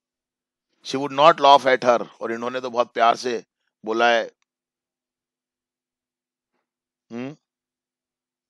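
A boy speaks with animation over an online call.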